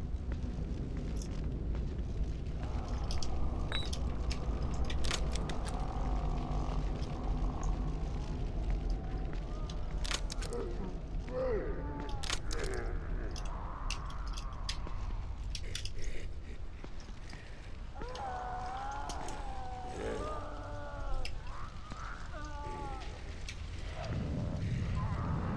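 Soft footsteps shuffle on wet pavement.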